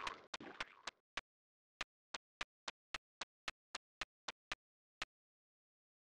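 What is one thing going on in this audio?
Light footsteps patter quickly on the ground.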